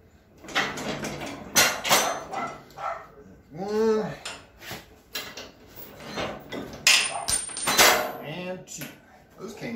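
Metal tools clink and scrape against metal.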